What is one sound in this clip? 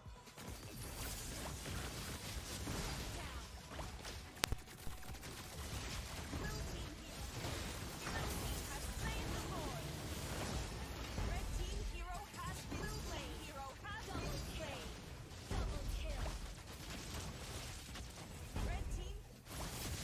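Video game battle effects clash and burst in quick succession.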